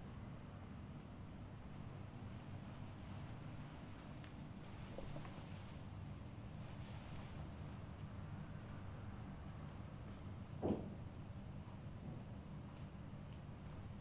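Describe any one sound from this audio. Hands rub and knead oiled skin softly.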